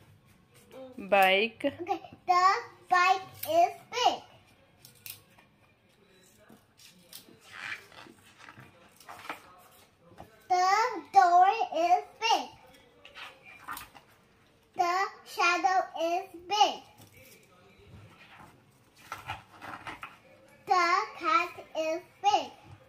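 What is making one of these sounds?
A young girl reads aloud in a clear, sing-song voice close by.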